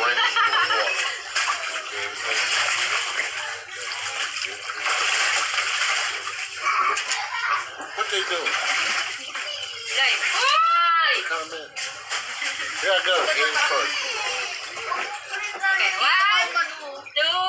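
Children shout and laugh excitedly close by.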